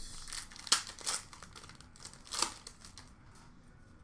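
A plastic wrapper crinkles as a card pack is torn open.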